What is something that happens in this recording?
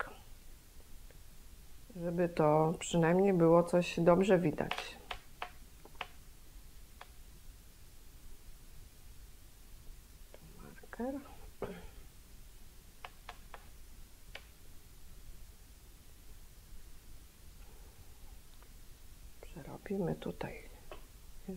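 Knitting needles click softly.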